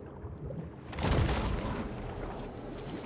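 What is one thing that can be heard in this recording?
An explosion bursts with a deep boom.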